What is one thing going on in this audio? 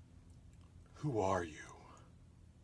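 A middle-aged man speaks up sharply close by.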